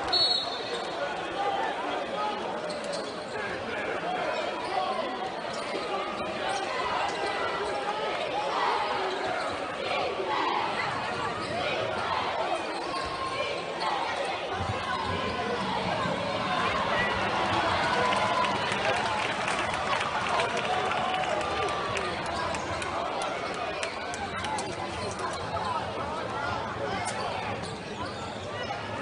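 A crowd murmurs and cheers throughout a large echoing arena.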